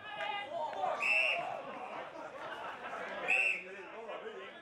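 An umpire blows short blasts on a whistle.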